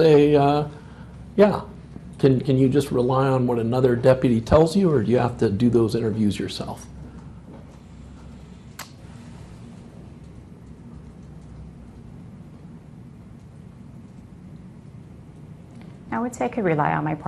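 A woman speaks calmly, close to a microphone.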